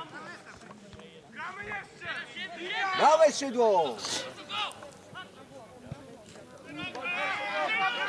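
Young men shout and call to each other from across an open field outdoors.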